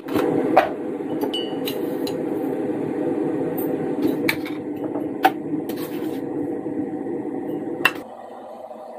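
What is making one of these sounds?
A metal spoon clinks against a container.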